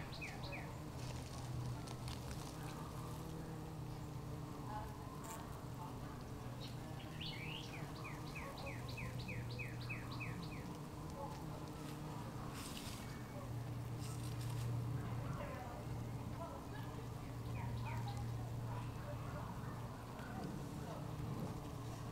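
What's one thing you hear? Bees buzz steadily and low around hives.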